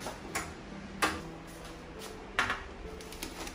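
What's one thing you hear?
An oven door clanks open.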